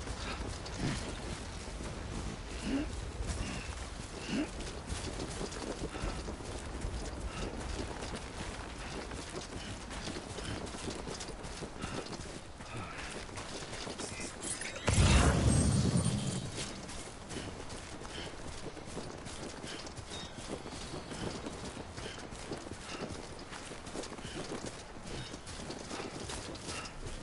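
Footsteps thud and swish through grass.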